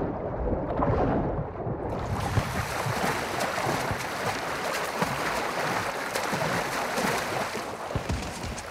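Water splashes and sloshes as a swimmer moves through it.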